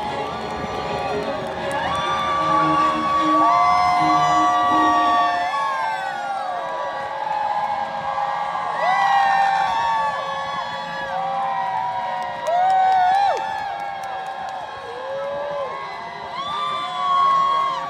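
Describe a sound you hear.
An electric guitar rings out with long bending, wailing notes through loud speakers.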